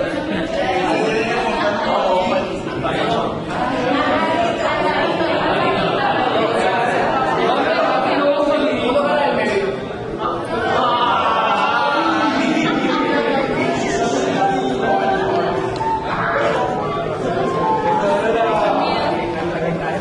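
A man speaks with animation to a group in an echoing room.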